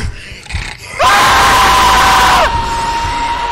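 A monster shrieks loudly and close.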